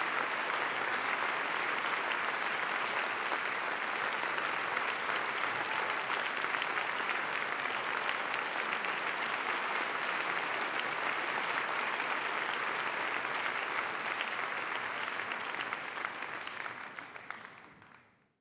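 An audience applauds steadily in a large hall and then fades out.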